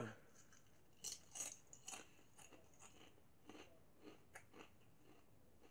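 A man crunches potato chips while chewing.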